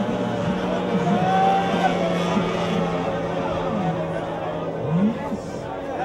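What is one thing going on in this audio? A racing boat engine whines loudly as the boat speeds past.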